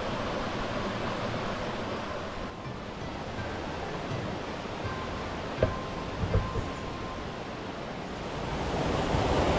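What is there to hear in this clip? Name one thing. A stream trickles gently over shallow stones.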